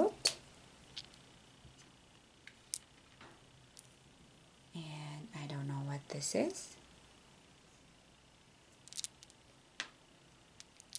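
Small plastic pieces click softly against each other.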